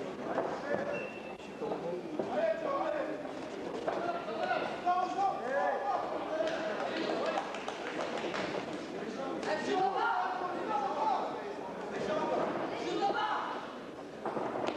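A crowd shouts and cheers throughout in a large echoing hall.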